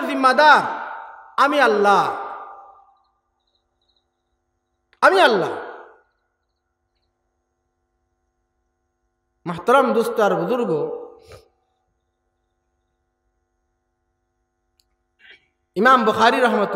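A man preaches forcefully into a microphone in bursts, with echoing pauses between them.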